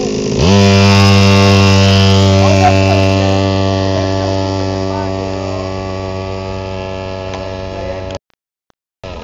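A motorcycle engine roars loudly and slowly fades as it rides away.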